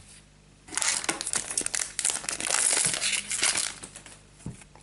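A foil card pack crinkles and rustles.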